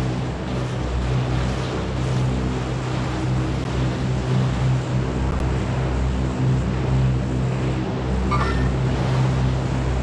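A propeller plane's engine drones steadily overhead.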